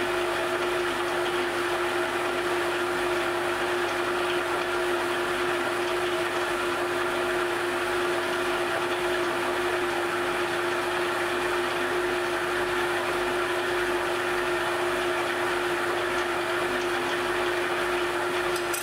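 A gas torch flame hisses steadily.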